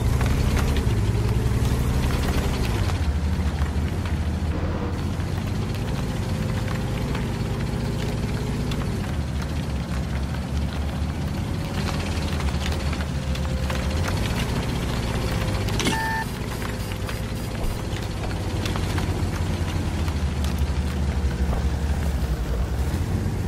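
A tank engine rumbles steadily as the tank drives over rough ground.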